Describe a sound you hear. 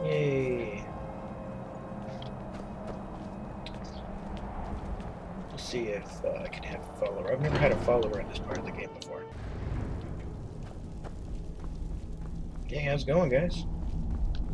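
Footsteps crunch on snow and stone.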